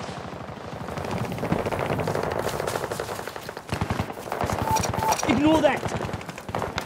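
Footsteps crunch quickly over snow and gravel.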